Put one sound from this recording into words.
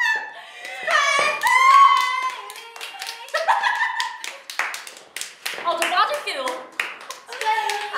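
Young women shriek and laugh loudly nearby.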